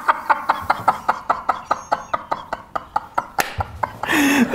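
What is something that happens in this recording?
A man laughs loudly in rapid, rhythmic bursts.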